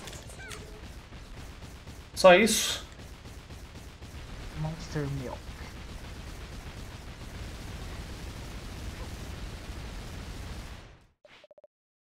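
Video game explosions boom and crackle rapidly.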